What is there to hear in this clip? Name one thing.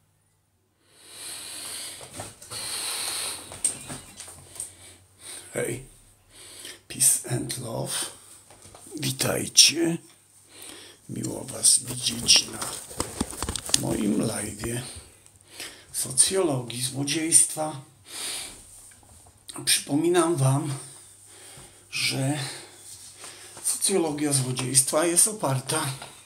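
An older man speaks calmly and close to the microphone.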